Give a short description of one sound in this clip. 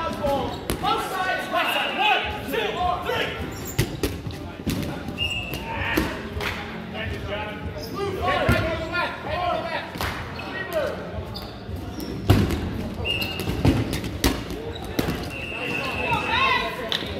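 A crowd of men shout and cheer with animation.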